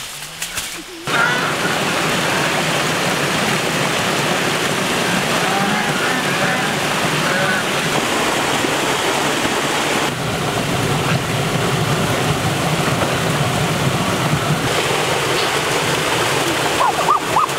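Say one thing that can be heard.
A stream rushes and splashes over rocks.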